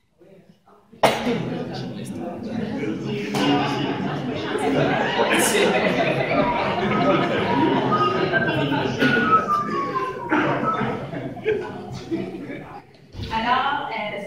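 Young women laugh together.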